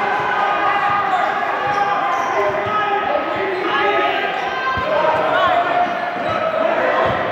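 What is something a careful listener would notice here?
Young girls call out to each other across the court.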